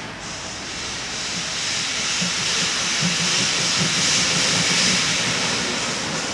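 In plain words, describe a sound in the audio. A steam locomotive chuffs rhythmically as it pulls away.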